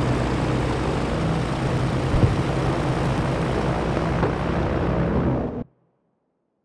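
A propeller plane's engines drone loudly and steadily.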